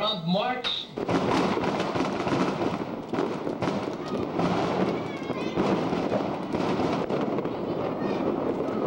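A firework fountain hisses and crackles loudly.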